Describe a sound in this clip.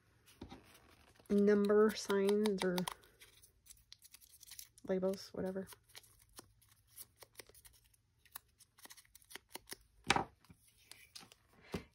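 Paper rustles and taps against a desk.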